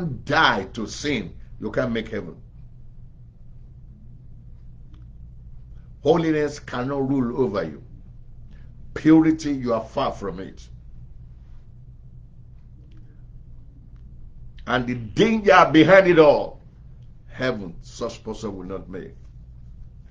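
A middle-aged man speaks with animation into a microphone, with pauses between phrases.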